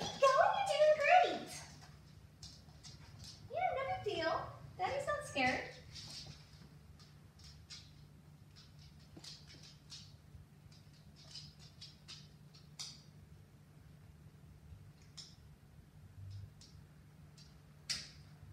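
Dog claws click on a hard floor.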